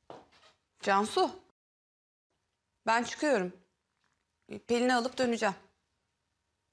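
A young woman speaks calmly and firmly nearby.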